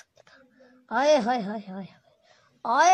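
A boy speaks close to the microphone.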